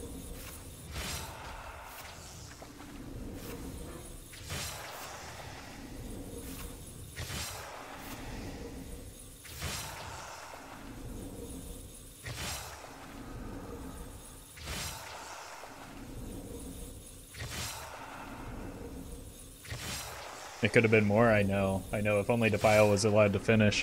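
A dark whooshing blast sounds again and again at a steady pace.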